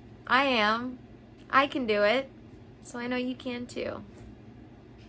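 A young woman speaks softly and warmly into a nearby microphone.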